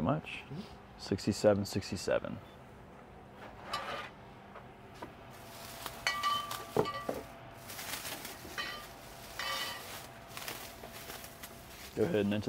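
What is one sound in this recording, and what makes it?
A plastic bag rustles as bottles are packed.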